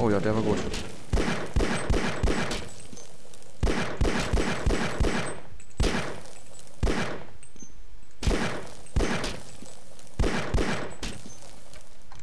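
A pistol fires single shots.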